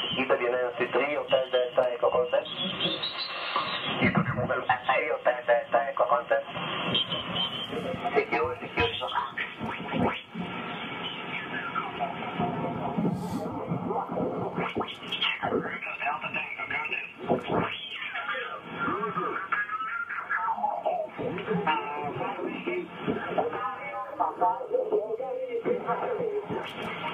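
A radio loudspeaker crackles and whistles with sweeping tones as a receiver is tuned across stations.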